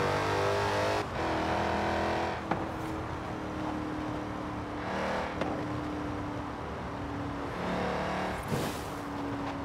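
A supercharged V8 muscle car shifts up through the gears.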